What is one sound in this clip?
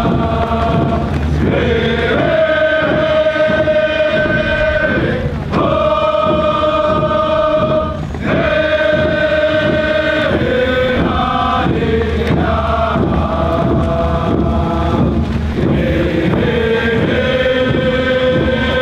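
A group of men and women sing together in a steady chant.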